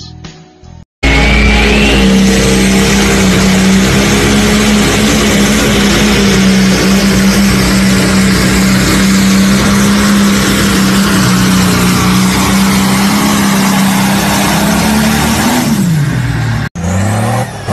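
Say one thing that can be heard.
A tractor engine roars loudly and steadily.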